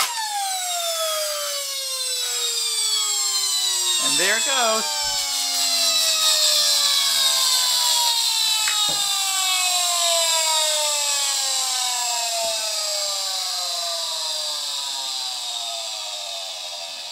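A small electric motor whirs loudly, its pitch slowly falling as it winds down.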